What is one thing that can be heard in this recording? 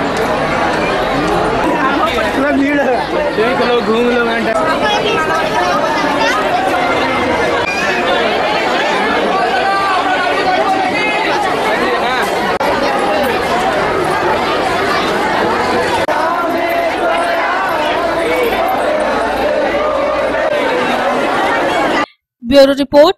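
A large crowd of people chatters and murmurs outdoors.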